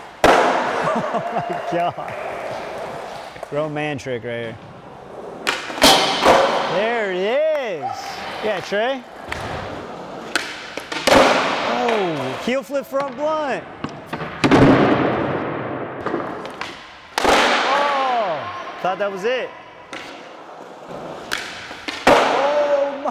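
A skateboard clacks and slams down hard.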